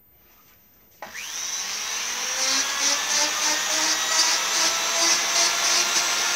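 A power drill spins a wooden rod with a rising whine.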